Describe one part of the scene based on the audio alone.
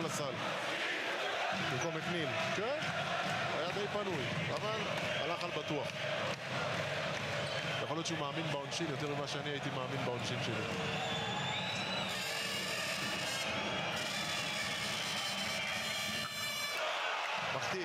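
A large crowd cheers and chants in a big echoing arena.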